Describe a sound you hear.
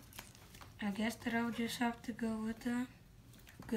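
Trading cards shuffle and flick in a boy's hands.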